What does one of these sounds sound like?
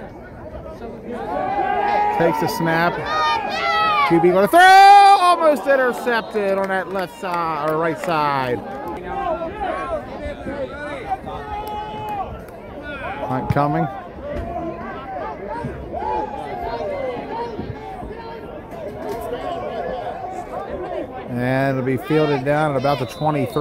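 A crowd of young men cheers and shouts loudly outdoors.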